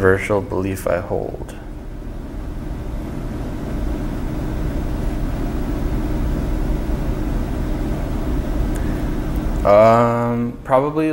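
A man speaks calmly and close by into a microphone.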